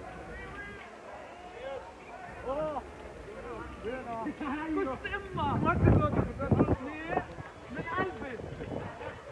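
Several young men talk and shout excitedly close by, outdoors.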